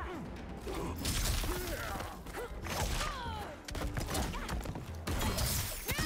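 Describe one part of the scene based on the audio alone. Magic blasts crackle and hiss.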